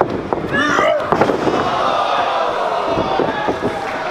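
A body slams down onto a wrestling mat with a heavy thud.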